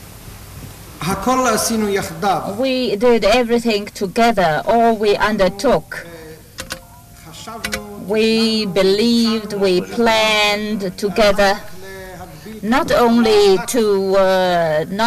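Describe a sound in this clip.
An elderly man speaks steadily into a microphone.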